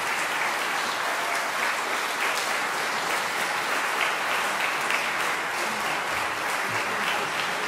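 A crowd claps steadily in a large echoing hall.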